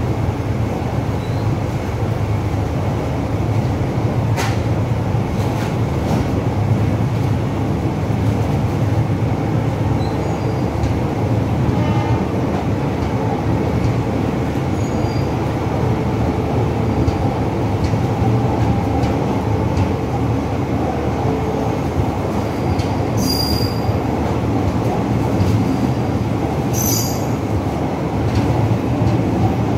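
Passenger coaches roll past on the rails with a low, steady rumble.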